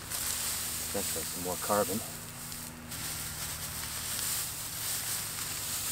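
Dry hay rustles as it is tossed and spread by hand.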